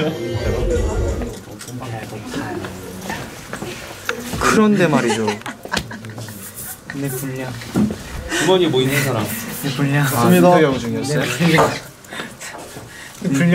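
Young men talk with animation close to a microphone.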